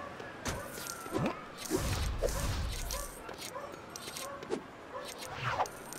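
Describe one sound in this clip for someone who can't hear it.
Small coins clink and jingle as they are picked up.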